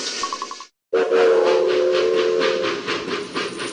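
A steam locomotive's whistle blows.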